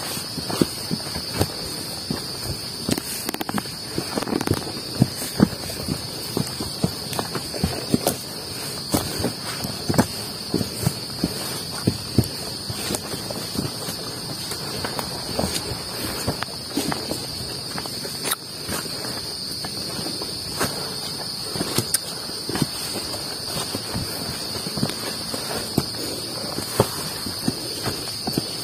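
Footsteps crunch and rustle through leaves on a forest trail.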